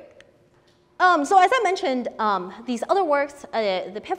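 A young woman speaks clearly and with animation through a microphone.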